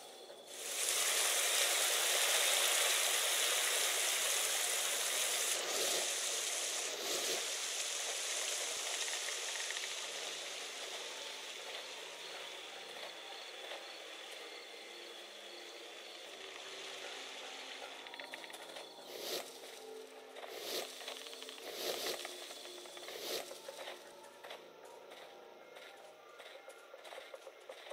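Footsteps tread softly on stone and gravel.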